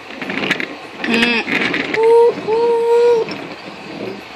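A wooden toy train rattles along wooden tracks.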